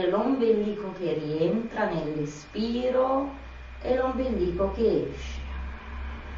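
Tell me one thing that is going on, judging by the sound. A woman speaks calmly and softly close by.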